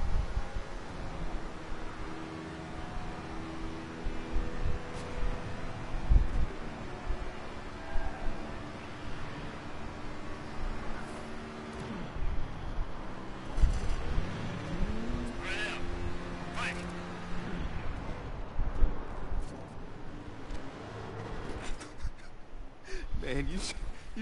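A motorcycle engine drones steadily as it speeds along.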